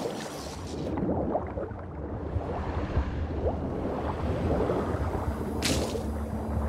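Muffled bubbling rumbles underwater.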